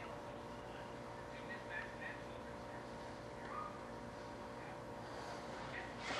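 A hand smooths paste over a hard surface with soft rubbing.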